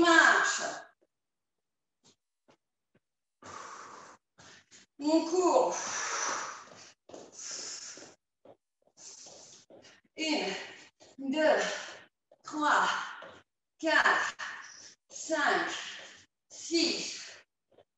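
Sneakers thud softly on a floor as a woman jogs in place.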